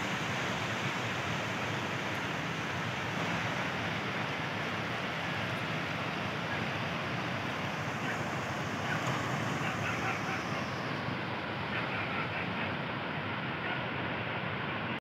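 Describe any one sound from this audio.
A fast river rushes and roars over rocks.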